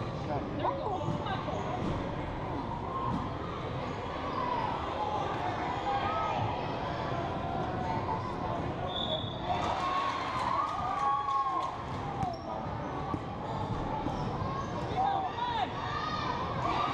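A crowd of children and adults chatter and call out in a large echoing gym.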